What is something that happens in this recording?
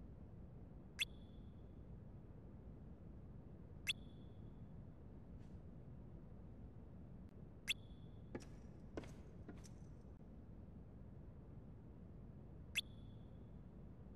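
A short high chime sounds each time a dialogue box pops up.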